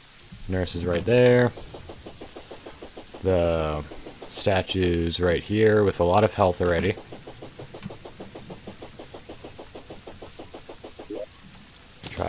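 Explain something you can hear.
A game weapon fires rapid, even shots.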